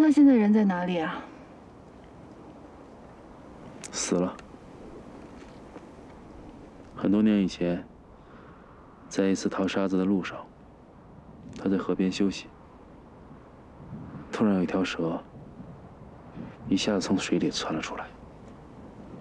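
A young woman speaks quietly and calmly, close by.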